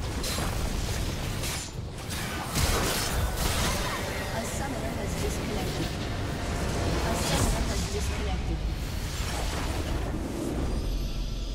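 Game spell effects blast and crackle in a battle.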